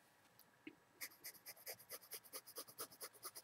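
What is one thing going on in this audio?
A pencil scratches in quick, even strokes on paper.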